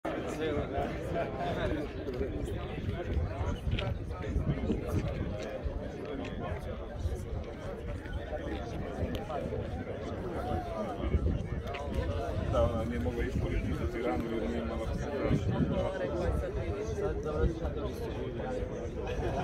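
A crowd of men and women chatter outdoors nearby.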